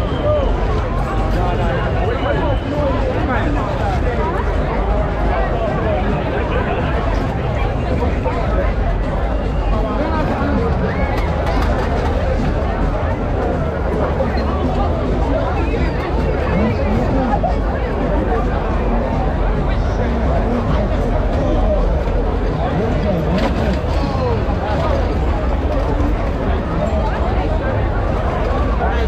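Loud music with a deep bass booms from speakers.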